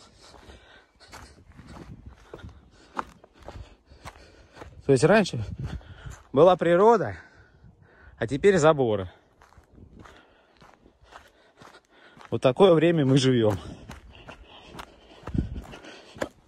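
Footsteps crunch on a dry dirt path outdoors.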